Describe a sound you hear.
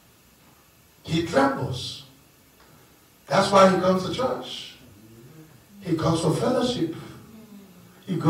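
A man speaks with animation through a microphone and loudspeakers, in short bursts with pauses.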